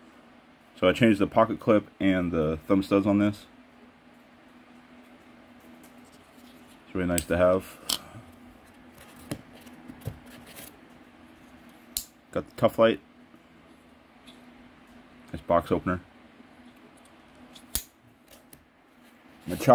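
A folding knife clicks and taps as it is handled.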